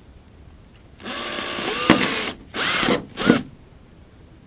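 An electric drill whirs in short bursts, close by.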